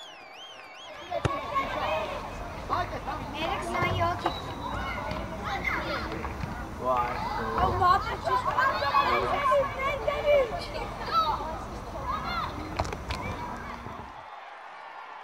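Young boys shout to each other outdoors on a playing field.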